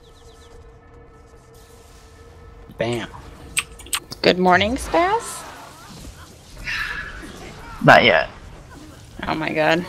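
Blows and spell effects crash and whoosh in a fight.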